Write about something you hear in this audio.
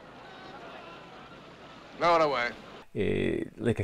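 A man speaks in a firm voice.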